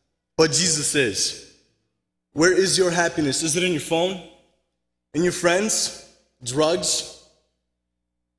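A young man speaks calmly into a microphone, in short phrases.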